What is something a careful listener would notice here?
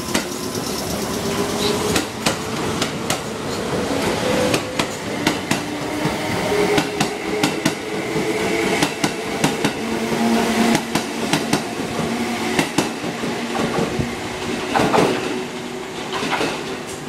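A train rushes past close by, its wheels clattering over rail joints.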